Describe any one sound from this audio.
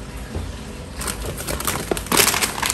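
A plastic snack packet crinkles in small hands.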